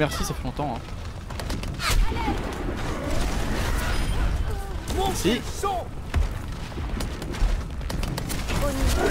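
A gun fires rapid shots in quick bursts.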